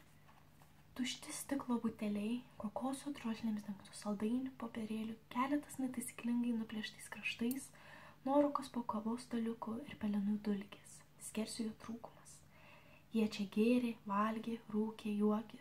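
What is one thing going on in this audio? A young woman reads aloud softly and close by.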